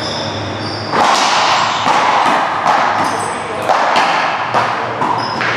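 A rubber ball smacks hard off walls and rackets, ringing through a large echoing hall.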